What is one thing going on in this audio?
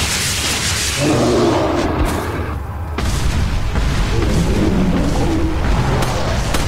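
A giant creature roars with a deep growl.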